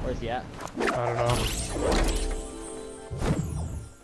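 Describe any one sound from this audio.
A glider whooshes through the air.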